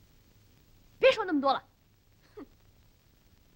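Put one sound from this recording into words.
A young girl and a young boy talk in hushed voices.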